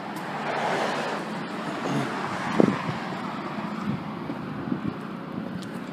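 Traffic hums along a nearby street.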